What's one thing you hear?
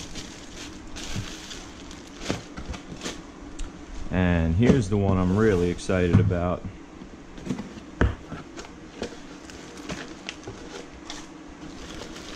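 Cardboard box flaps scrape and tap.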